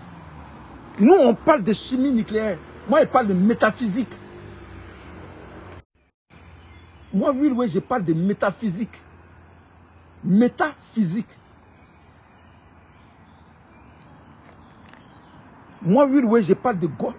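A middle-aged man speaks with animation close to the microphone, in short bursts with pauses.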